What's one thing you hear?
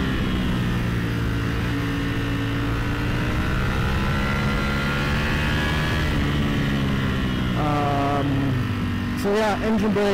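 A motorcycle engine hums steadily and changes pitch as the rider shifts gears.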